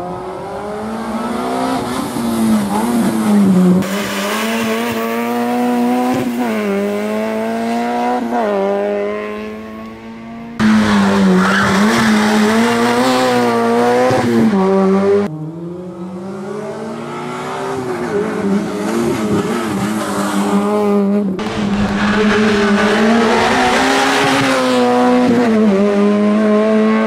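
A racing car engine roars, revving high and dropping sharply as gears change.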